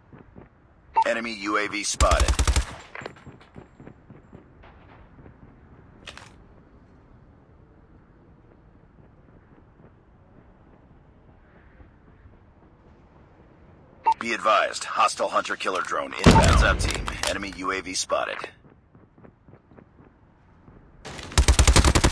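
Rapid gunfire rings out in loud bursts.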